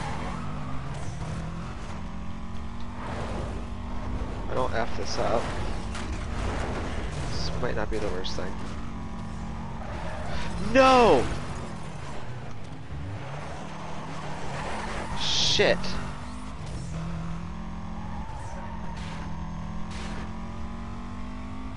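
A racing car engine roars steadily, shifting up and down through gears.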